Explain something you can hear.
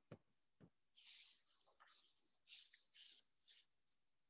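A felt eraser rubs across a board in quick strokes.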